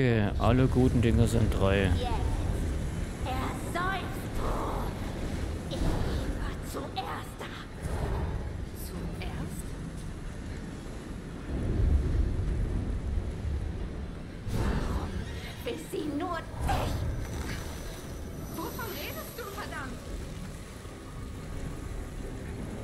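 Footsteps walk slowly across a floor.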